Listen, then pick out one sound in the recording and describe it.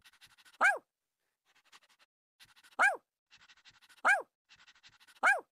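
A small dog barks sharply now and then.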